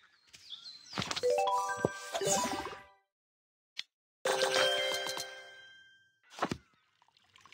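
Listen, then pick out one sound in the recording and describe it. Bright game chimes ring out in quick bursts.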